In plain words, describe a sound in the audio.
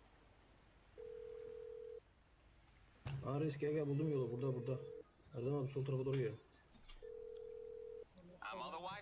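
A phone line gives a ringing tone.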